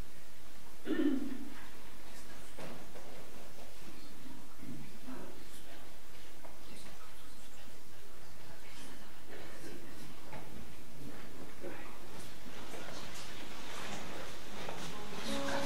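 Footsteps shuffle on a wooden floor.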